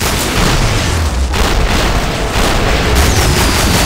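Handguns fire shots in rapid succession.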